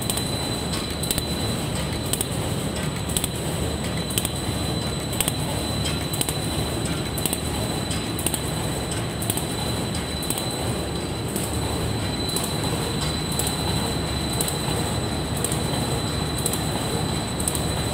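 A machine clicks in a quick, even rhythm.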